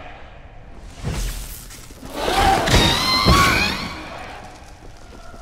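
Weapons clash and strike loudly in a fight.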